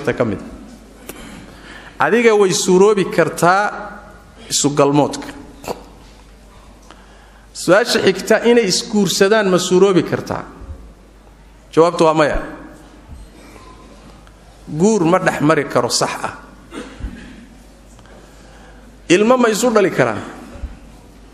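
A man preaches with animation into a microphone, in bursts with pauses, in a reverberant hall.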